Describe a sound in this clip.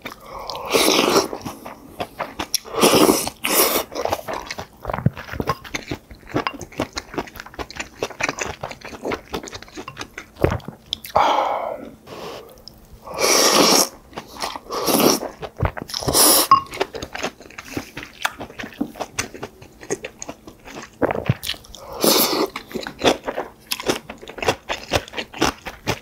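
A man chews food wetly, close to a microphone.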